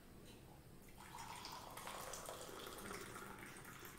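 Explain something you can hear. Tea pours from a glass pot into a mug.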